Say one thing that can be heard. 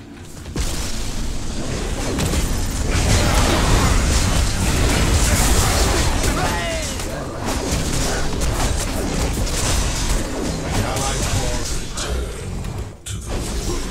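Game explosions and magic blasts crash and whoosh in a fast fight.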